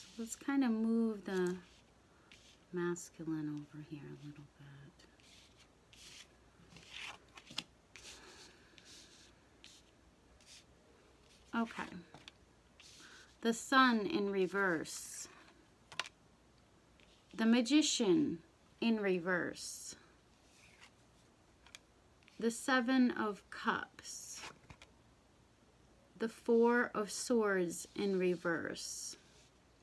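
Playing cards slide and tap softly on a cloth-covered table.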